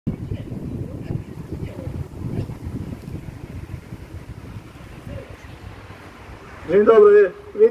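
A middle-aged man speaks into a handheld microphone outdoors.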